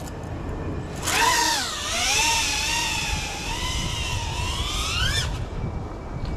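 A small FPV quadcopter takes off, its motors whining and rising and falling in pitch.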